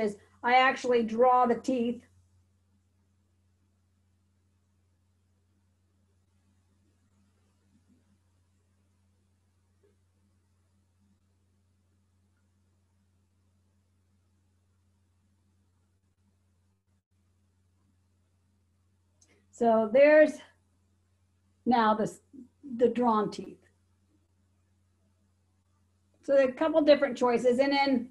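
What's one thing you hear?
A middle-aged woman speaks calmly and close by, in short bursts with long pauses.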